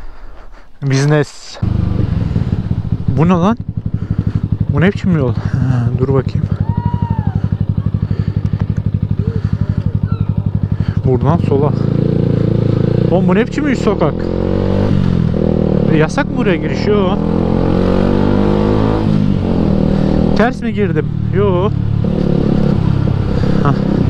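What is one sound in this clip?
A motorcycle engine idles and then revs as the bike pulls away.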